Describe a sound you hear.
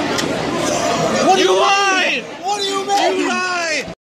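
A teenage boy exclaims with excitement close by.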